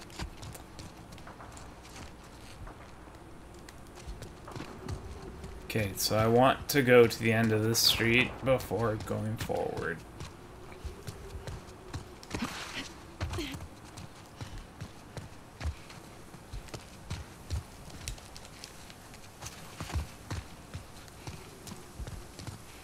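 Footsteps run quickly over hard ground and grass.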